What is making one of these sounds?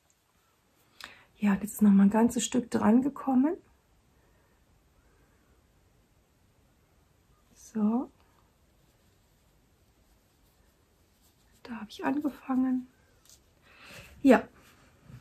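A woman speaks calmly and close by, in short bursts with pauses.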